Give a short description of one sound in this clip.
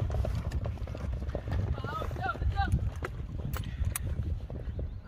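Horses gallop away over soft ground, hooves thudding and fading.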